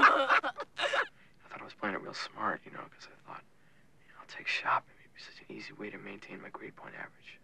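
A teenage boy speaks hesitantly nearby.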